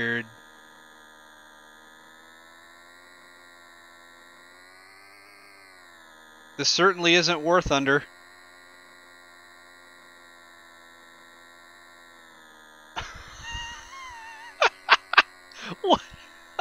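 A small propeller plane's engine drones steadily, its pitch rising and falling slightly.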